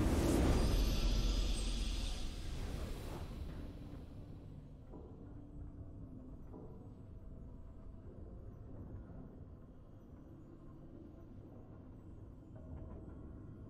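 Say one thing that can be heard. A triumphant fanfare plays and slowly fades.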